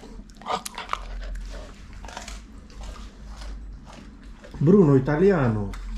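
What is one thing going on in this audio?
A dog chews food with loud chomping.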